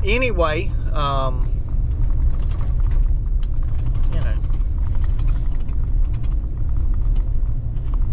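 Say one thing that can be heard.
A vehicle's engine and tyres rumble low and steadily from inside the cab.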